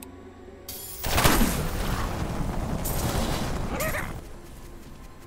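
Magic blasts and clashing combat sounds crash loudly.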